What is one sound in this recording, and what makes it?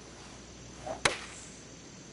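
A golf club strikes a ball with a sharp crack.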